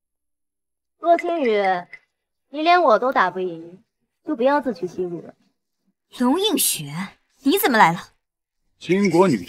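A woman speaks sharply up close.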